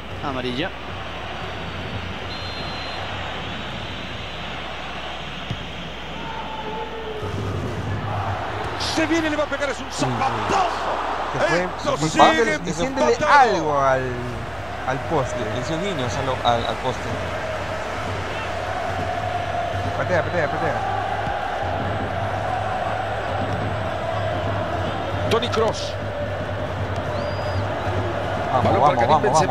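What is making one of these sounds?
A large stadium crowd roars and cheers steadily.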